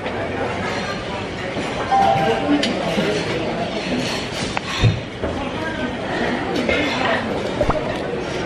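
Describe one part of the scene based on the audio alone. A young woman eats and chews noisily close by.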